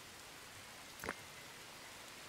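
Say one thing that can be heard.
A short game interface click sounds.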